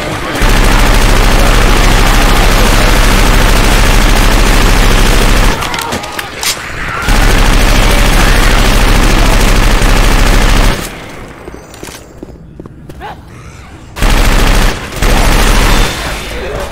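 A rapid automatic gun fires in long, loud bursts.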